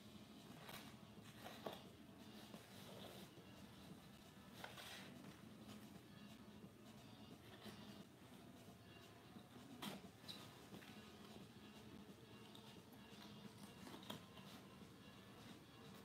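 Scissors snip and rustle through stiff card.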